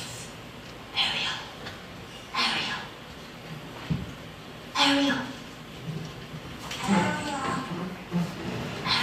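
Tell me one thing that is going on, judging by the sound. A young woman speaks with emotion on a stage, heard from the audience.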